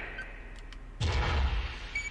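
A robot's heavy metal footsteps thud and clank.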